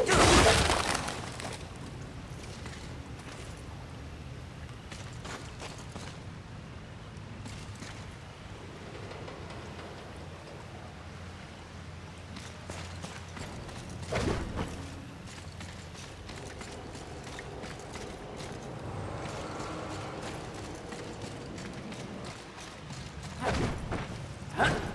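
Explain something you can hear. Footsteps crunch on a dirt floor.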